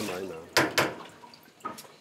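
Metal pots clatter together in a sink.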